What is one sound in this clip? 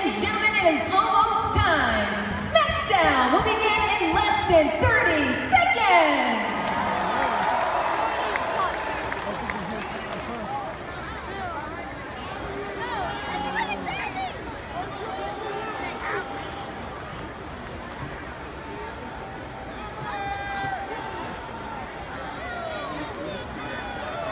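A large crowd murmurs and chatters steadily.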